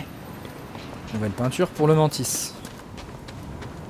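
Footsteps run quickly over rocky ground.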